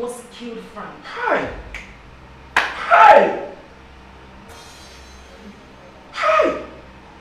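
A woman shouts angrily.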